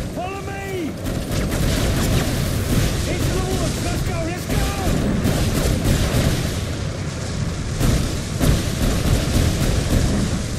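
Gunfire crackles in rapid bursts nearby.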